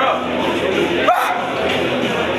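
A man slaps his own shoulders with a sharp smack.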